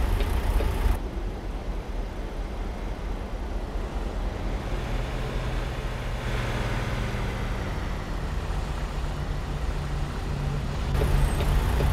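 A truck engine drones outside as the truck drives down the road.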